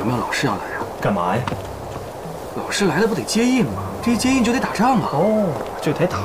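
Another man answers in a lively voice, close by.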